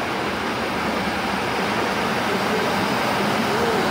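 Automatic glass doors slide open.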